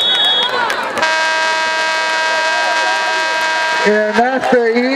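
A marching band plays brass horns loudly outdoors.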